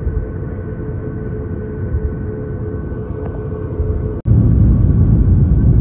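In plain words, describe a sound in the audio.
Jet engines hum and rumble steadily inside an airliner cabin as it taxis.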